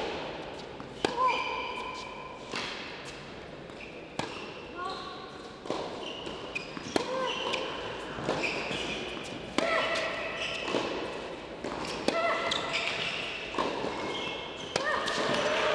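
A tennis ball is struck sharply back and forth by rackets.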